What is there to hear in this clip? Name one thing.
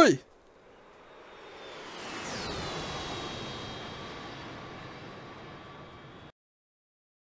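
A jet aircraft roars past overhead and fades away.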